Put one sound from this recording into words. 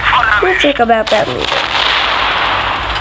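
A tank shell explodes with a loud boom.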